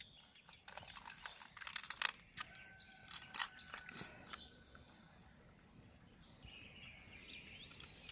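Fingers squelch through soft flesh inside a shell.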